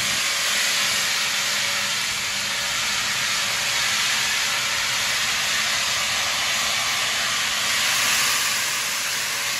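A steam locomotive chuffs rhythmically as it moves.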